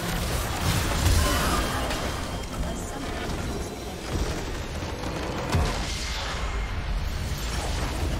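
Magic blasts and impacts crackle and boom in a video game battle.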